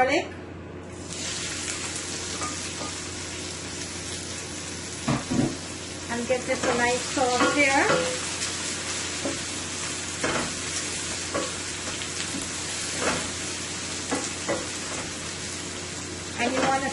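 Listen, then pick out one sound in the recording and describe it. Vegetables sizzle loudly in hot oil.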